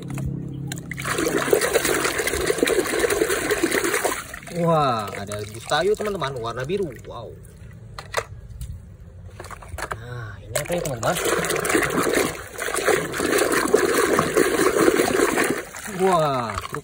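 A hand splashes and sloshes through muddy water.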